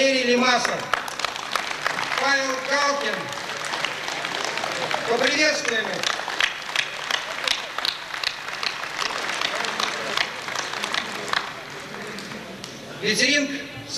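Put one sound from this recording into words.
A man sings loudly through a microphone in a large echoing space.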